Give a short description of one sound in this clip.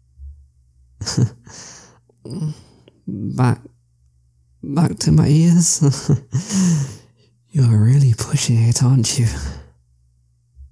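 A young man speaks softly and playfully, close to a microphone.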